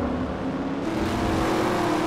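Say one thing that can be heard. Tyres screech as two cars rub against each other.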